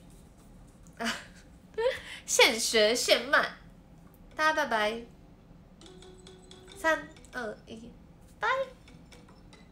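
A young woman talks playfully, close to a phone microphone.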